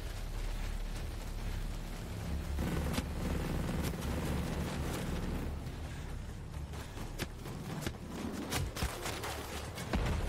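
Footsteps crunch softly on dirt and gravel.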